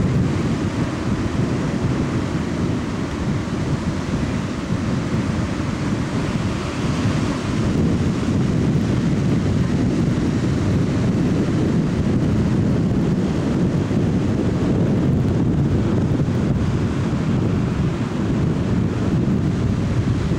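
Rolling surf breaks and washes onto a shore.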